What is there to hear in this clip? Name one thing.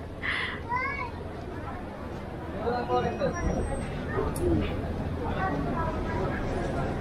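Traffic hums outdoors on a busy street.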